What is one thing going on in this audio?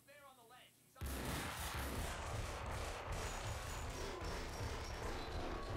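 Pistol shots fire rapidly one after another.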